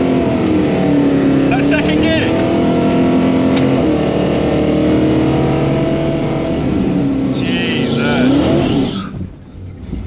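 A car engine drones steadily and then drops away.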